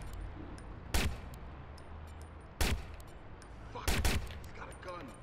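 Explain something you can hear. Gunshots ring out in sharp single bangs.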